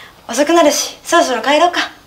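A young woman speaks brightly, close by.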